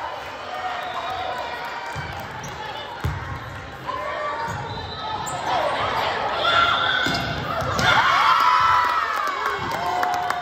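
A volleyball is struck with hollow smacks.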